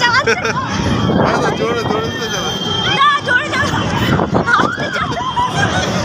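A young man laughs close to the microphone.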